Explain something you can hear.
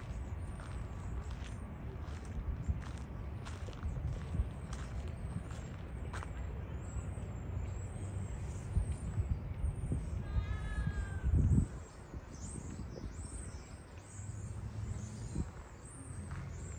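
Wind gusts outdoors with a low rumble.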